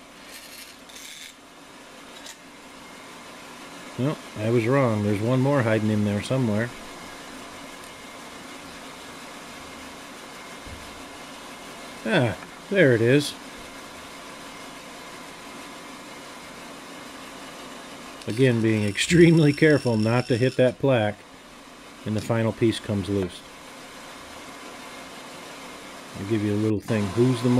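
A band saw runs with a steady low hum.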